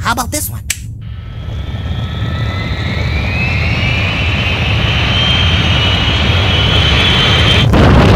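A rocket engine roars, growing louder and rising in pitch.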